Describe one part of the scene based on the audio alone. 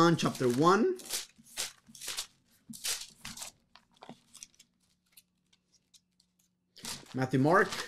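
Paper rustles and crinkles as a man handles it.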